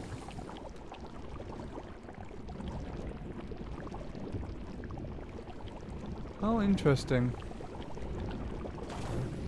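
Thick liquid sloshes and splashes steadily as something wades through it.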